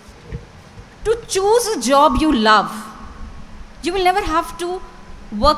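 A woman speaks into a microphone over a loudspeaker, in an echoing hall.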